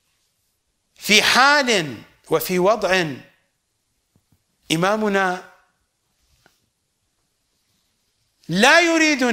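A middle-aged man speaks calmly and expressively into a close microphone, in bursts with pauses.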